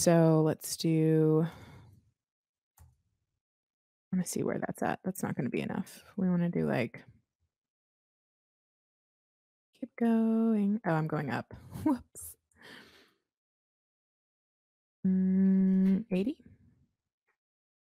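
A young woman talks casually into a close microphone, in short bursts with pauses.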